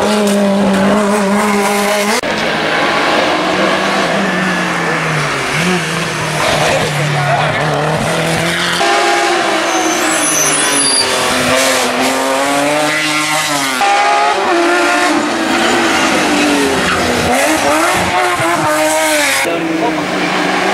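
A racing car engine roars loudly, revving up and dropping as the car speeds past close by.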